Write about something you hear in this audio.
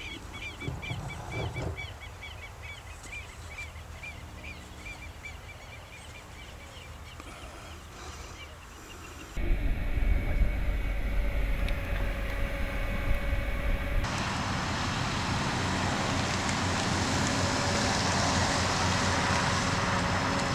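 A car engine hums as a car drives along a road.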